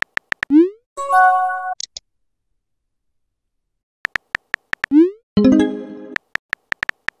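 A chime sounds as a new message arrives.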